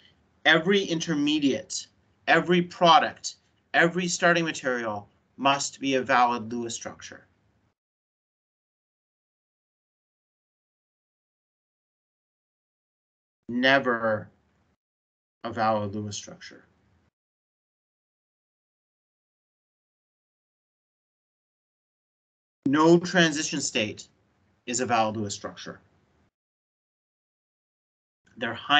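A man explains calmly, heard through an online call, with long pauses.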